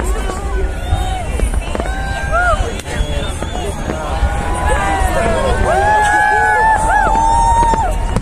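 Fireworks boom and crackle overhead.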